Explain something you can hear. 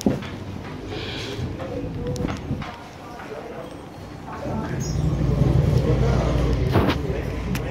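A man and a woman talk nearby.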